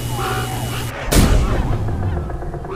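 A weapon fires with a loud, booming blast.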